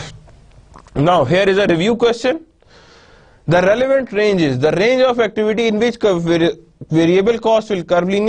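A man speaks calmly into a close microphone, explaining at a steady pace.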